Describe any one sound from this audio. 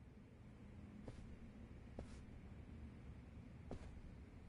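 Footsteps tread softly along a quiet corridor.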